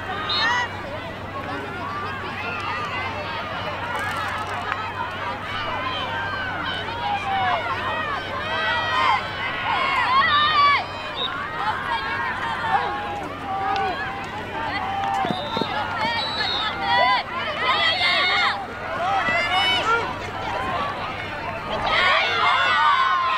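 Teenage girls shout to one another.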